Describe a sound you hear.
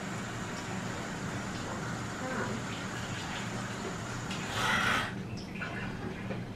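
Dishes clink and rattle in a sink.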